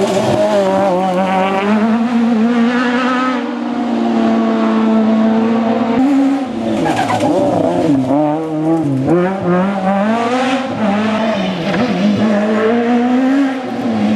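A rally car engine roars and revs up and down as the car speeds past.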